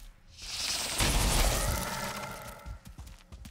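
A magical blast whooshes and crackles.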